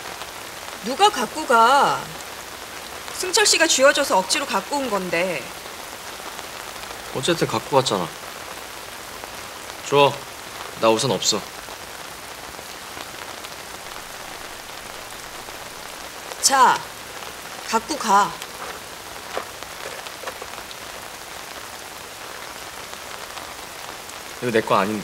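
A young man speaks quietly up close.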